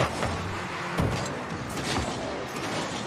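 A video game ball is struck with a heavy thump.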